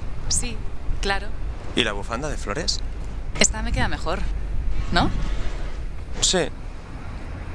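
A young man speaks, close by.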